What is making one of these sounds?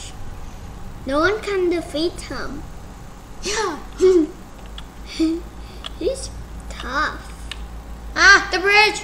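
A second young boy talks and exclaims close to a microphone.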